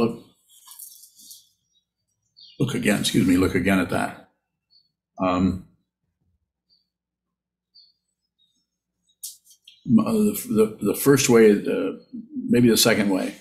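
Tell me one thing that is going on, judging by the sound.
An elderly man speaks calmly through an online call, with pauses.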